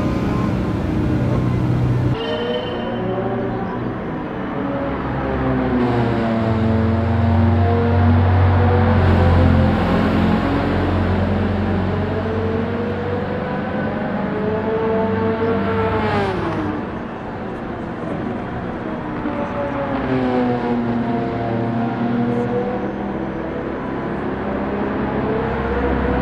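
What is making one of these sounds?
A small car engine hums and revs up and down, rising and falling in pitch throughout.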